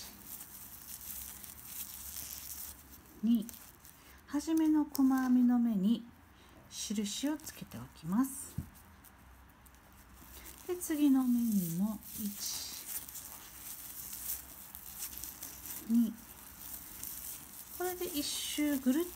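Paper yarn rustles softly as a crochet hook pulls it through stitches.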